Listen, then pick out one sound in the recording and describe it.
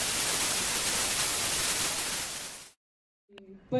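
A television hisses loudly with static.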